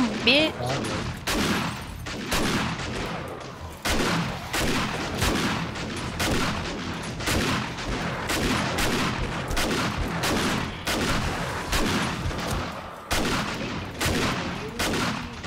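A gun fires in rapid bursts of loud shots.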